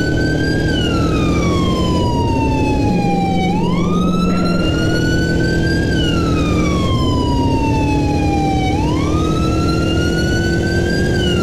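A motorcycle engine roars steadily as the bike rides along.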